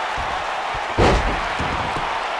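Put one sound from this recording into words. A wrestler slams heavily onto a ring mat with a loud thud.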